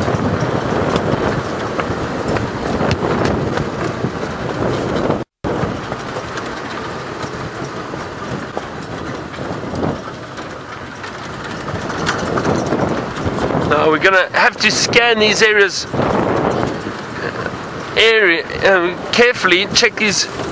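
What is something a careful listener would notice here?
A vehicle engine rumbles steadily while driving over a bumpy dirt track.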